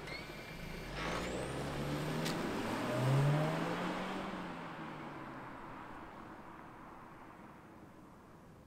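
A car accelerates away and fades into the distance.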